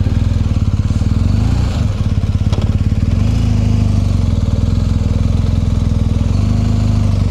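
A motorcycle engine idles with a deep, rapid throb close by.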